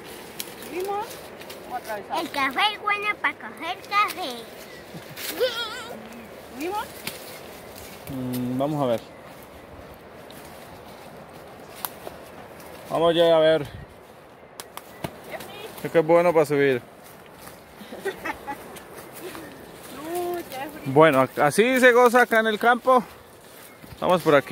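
Leaves and plants rustle as people push through them.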